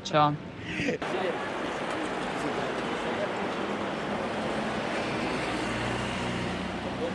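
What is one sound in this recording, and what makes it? A busy street crowd murmurs outdoors.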